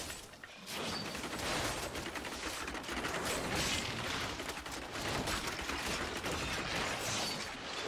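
Fiery spell blasts roar and crackle in a game battle.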